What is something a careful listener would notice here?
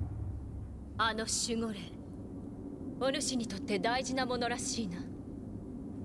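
A man speaks slowly in a low, calm voice.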